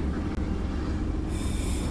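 A small rail cart rumbles along metal tracks.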